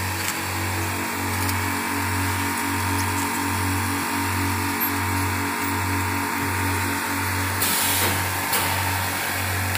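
A packing machine hums with a steady, rhythmic throb.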